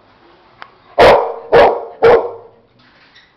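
A dog barks loudly three times close by.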